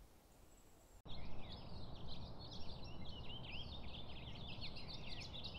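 A small bird sings a quick, twittering song close by.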